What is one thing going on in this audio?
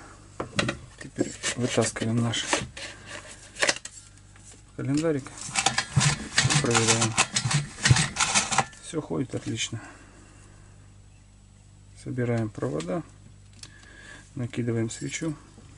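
Plastic engine parts click and rattle as they are handled.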